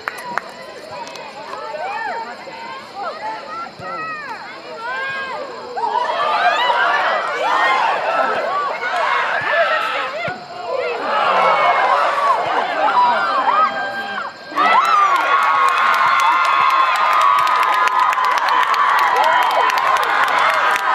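A crowd of spectators shouts and cheers outdoors, growing loud near the end.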